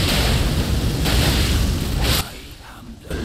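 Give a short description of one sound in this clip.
Flames roar in a loud burst.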